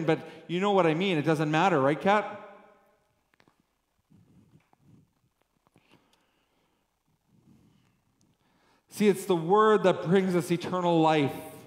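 A man speaks with animation through a microphone in an echoing hall, pausing in between.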